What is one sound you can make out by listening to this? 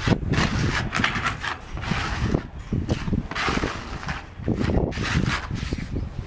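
A trowel scoops wet mortar.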